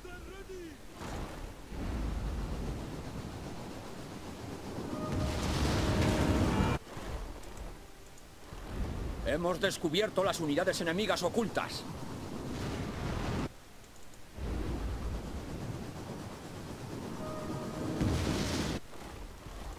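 A projectile roars through the air.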